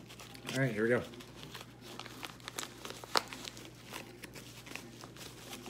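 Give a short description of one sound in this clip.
A plastic bottle crinkles and clicks.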